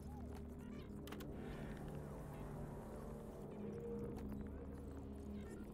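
Game menu buttons click sharply.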